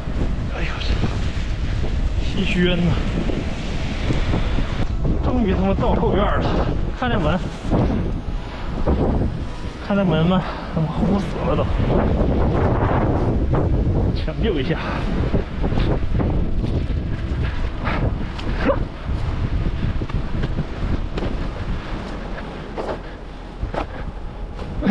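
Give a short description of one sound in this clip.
A snow shovel scrapes and pushes through deep snow.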